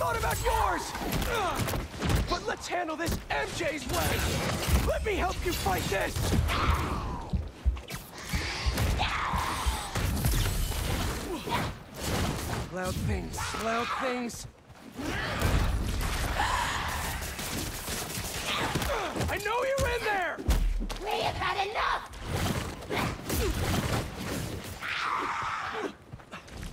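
A monster shrieks and screeches.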